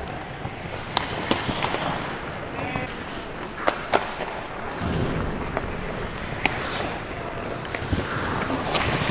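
Hockey sticks clack sharply against a puck in a large echoing arena.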